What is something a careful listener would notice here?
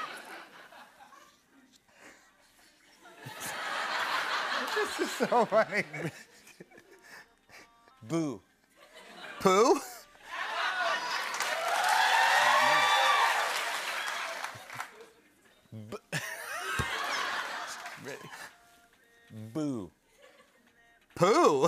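A young man laughs and talks excitedly.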